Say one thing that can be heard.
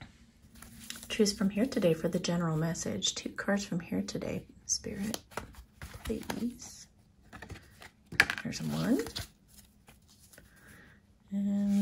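Playing cards are shuffled and riffled by hand.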